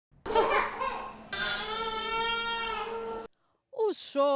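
A baby cries loudly in long wails.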